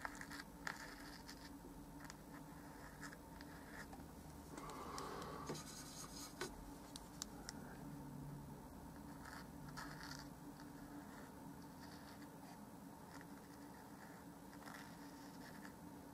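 A paintbrush brushes softly against a canvas.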